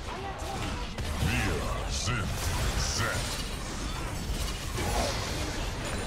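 Game spell effects blast and crackle.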